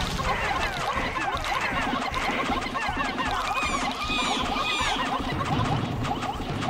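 Many small creatures chirp and squeak rapidly in a busy chatter.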